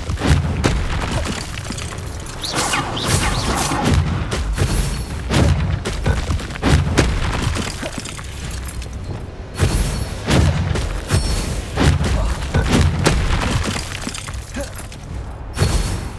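Magic spells blast and crackle in bursts.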